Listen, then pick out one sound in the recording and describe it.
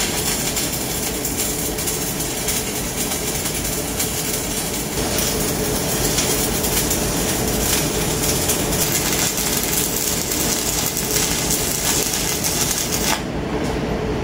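An electric welding arc crackles and hisses against a steel pipe.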